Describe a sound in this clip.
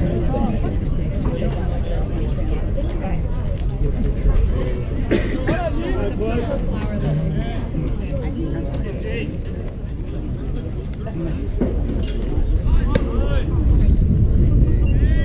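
Men call out across an open field.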